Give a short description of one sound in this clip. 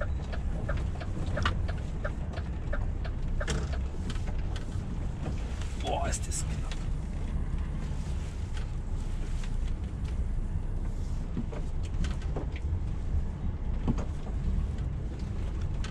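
A truck engine rumbles steadily from inside the cab.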